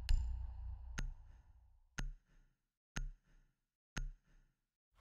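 A countdown timer beeps once a second.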